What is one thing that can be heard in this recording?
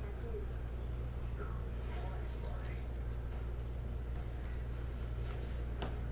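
Trading cards rustle and slide as hands shuffle them.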